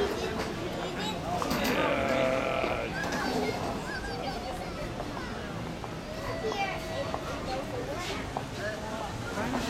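Adult men and women chatter nearby outdoors.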